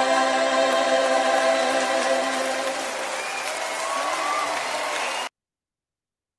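A hymn with singing and instruments plays, then cuts off suddenly.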